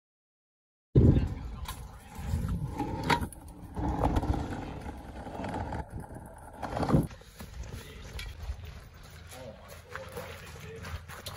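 Scooter wheels roll and rattle over rough pavement.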